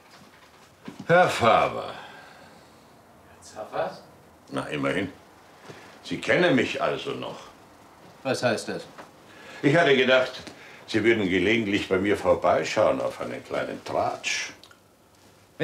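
An older man talks cheerfully nearby.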